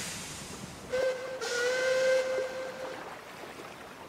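A steam engine's whistle blows.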